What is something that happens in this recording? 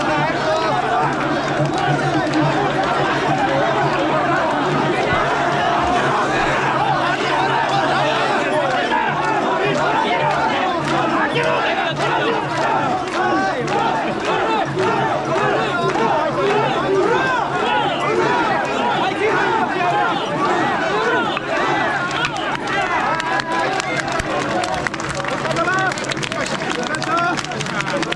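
A large crowd of men chants loudly and rhythmically outdoors.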